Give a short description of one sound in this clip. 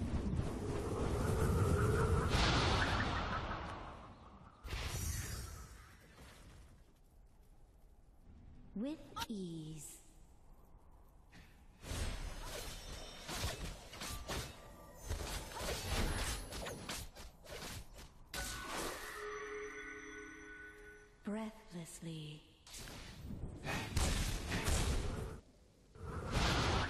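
Magic spell effects whoosh and crackle in a video game battle.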